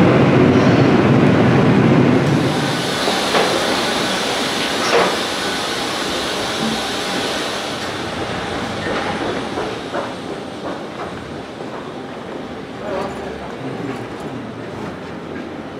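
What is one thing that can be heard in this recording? Footsteps tread along a walkway.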